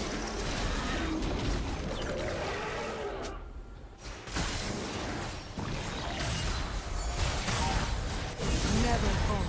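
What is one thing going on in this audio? Magic spell effects whoosh and crackle in a fast-paced battle.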